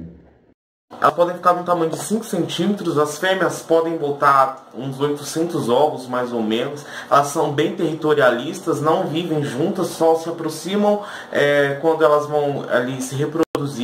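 A young man speaks calmly and clearly to the listener.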